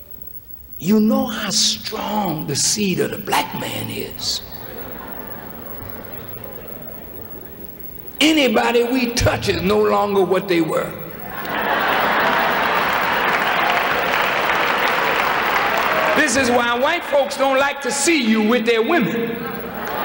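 A man speaks forcefully into a microphone in a large echoing hall, pausing between phrases.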